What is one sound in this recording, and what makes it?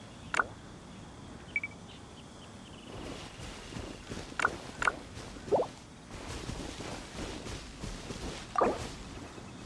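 Short game menu blips sound now and then.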